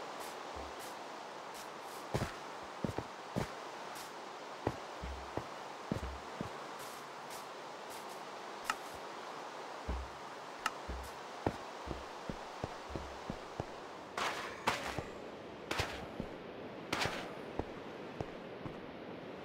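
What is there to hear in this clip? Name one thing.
Short crunching thuds of blocks being dug sound again and again.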